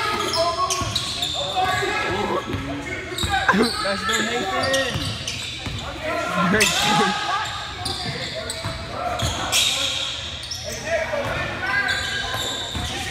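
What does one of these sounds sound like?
Spectators talk and call out nearby.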